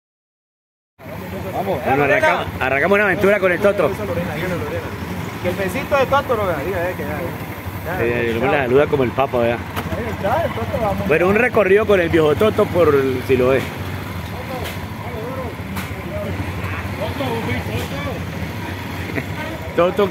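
A motorcycle engine idles with a low rumble.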